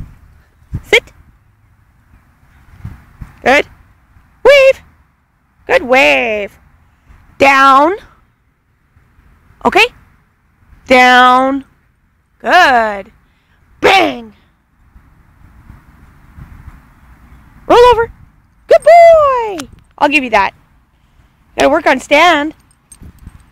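A small dog barks and yips excitedly in short bursts, close by.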